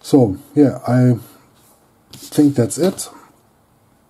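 Trading cards are set down on a table.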